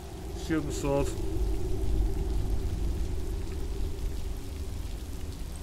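A waterfall rushes nearby.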